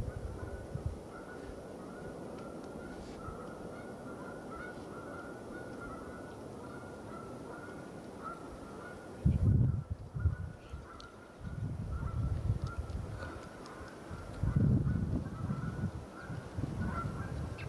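A twin-engine jet airliner roars in the distance as it rolls out along a runway after landing.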